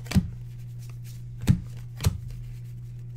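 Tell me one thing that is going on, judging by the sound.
Trading cards flick and tap against each other.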